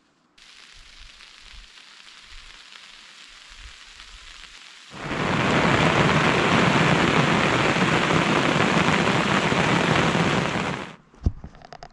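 Hail patters steadily on a tarp outdoors.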